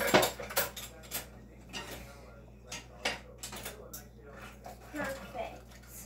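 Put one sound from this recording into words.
Objects clatter and knock as a child rummages in a drawer.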